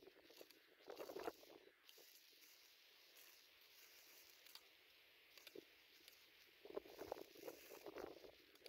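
Small stones clatter and scrape as hands sift through rocky ground.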